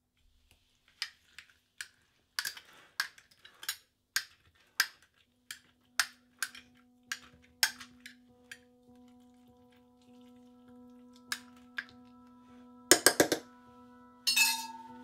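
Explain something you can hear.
A metal utensil clinks and scrapes against a glass jar.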